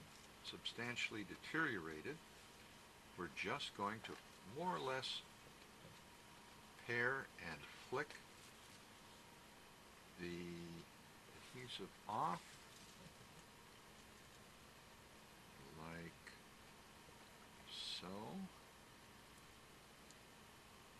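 A small blade scrapes lightly on stiff card.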